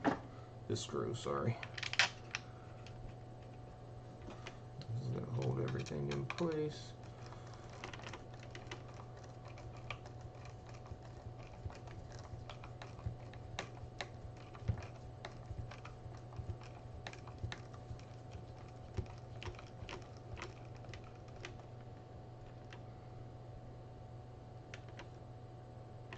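A screwdriver clicks and scrapes against small metal screws.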